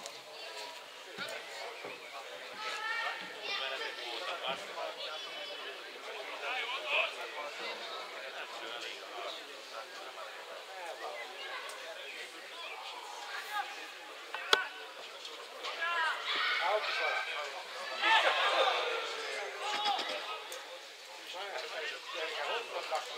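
Men nearby talk and call out outdoors.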